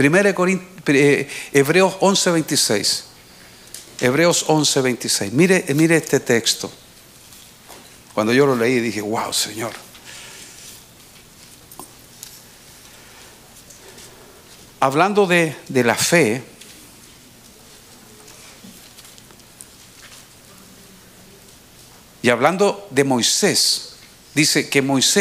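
A middle-aged man speaks slowly and earnestly into a microphone over a loudspeaker, pausing often.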